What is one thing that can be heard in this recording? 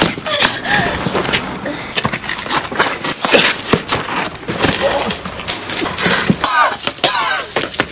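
Bodies scuffle and thud on the ground.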